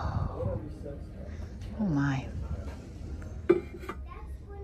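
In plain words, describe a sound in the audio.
A brass pot knocks against a wooden shelf as it is set down.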